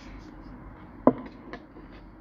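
A cup knocks down onto a wooden table.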